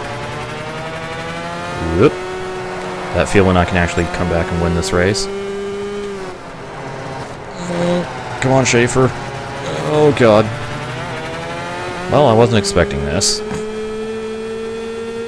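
A small kart engine buzzes steadily, its pitch rising and falling with speed.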